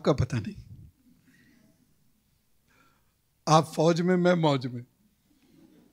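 A middle-aged man speaks with animation into a microphone, sometimes drawing out his words in a sing-song way.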